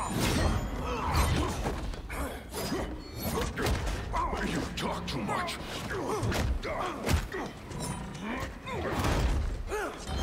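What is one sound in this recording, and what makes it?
Blows and impacts thud in a fight.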